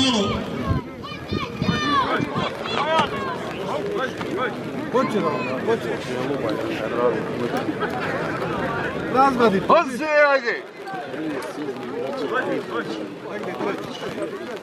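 A large outdoor crowd of men and women chatters and calls out loudly.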